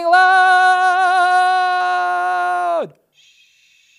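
A man sings a long, steady high note close to a microphone, then lets it drop away.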